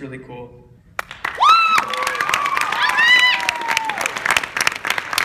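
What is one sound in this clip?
An audience cheers with high shrieks and claps.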